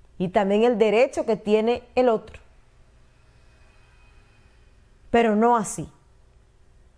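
A young woman speaks calmly and clearly into a microphone, in short bursts with pauses.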